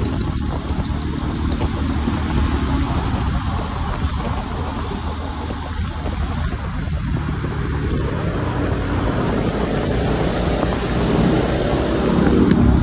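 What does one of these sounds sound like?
A motorcycle engine hums steadily up close and rises in pitch toward the end.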